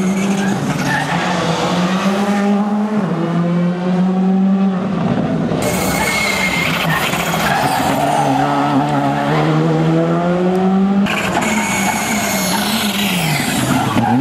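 A rally car engine roars loudly, revving up and down through the gears as cars speed past.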